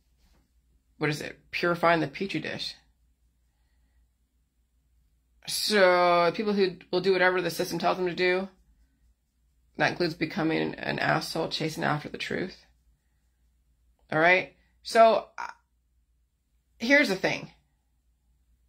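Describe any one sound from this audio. A woman speaks calmly and close by, in short phrases with pauses.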